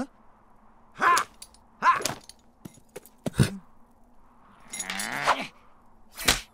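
A man speaks in a high cartoonish voice with animation, close by.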